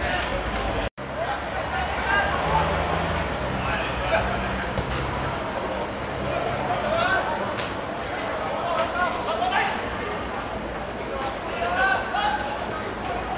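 Men shout to one another in the distance outdoors.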